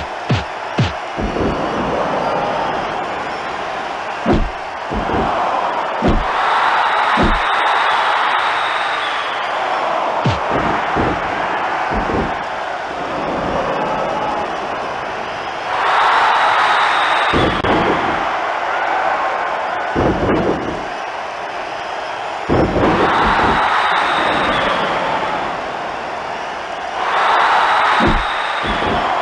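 A crowd cheers and roars loudly throughout.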